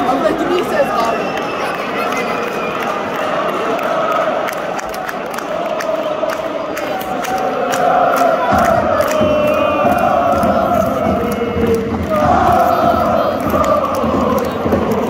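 A stadium crowd claps in rhythm.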